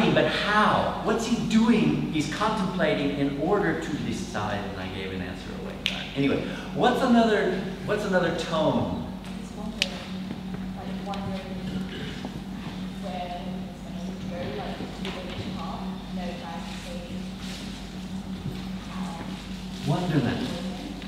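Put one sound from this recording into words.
An elderly man speaks with animation to a group in a large, echoing room.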